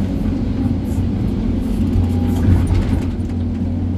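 Dirt and rocks tumble from a bucket into a truck bed.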